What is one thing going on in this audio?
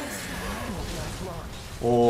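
A burst of fire roars.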